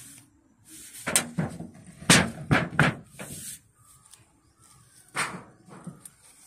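A thin metal sheet rattles and scrapes as it is lifted.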